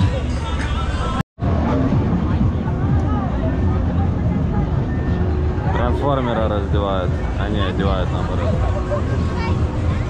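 A busy crowd murmurs and chatters outdoors in a noisy street.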